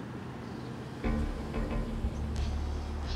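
A car engine hums as a car rolls slowly by.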